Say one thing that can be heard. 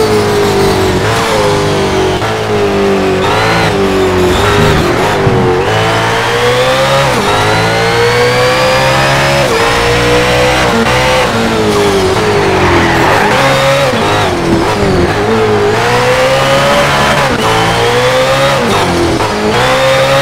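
A car engine roars loudly, revving up and down through the gears.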